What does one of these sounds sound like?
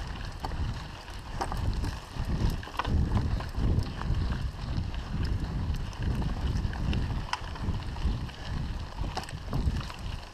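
Wind rumbles loudly against the microphone.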